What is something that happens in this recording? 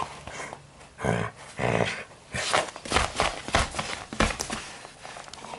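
A dog's paws scrape and thump on a wooden floor.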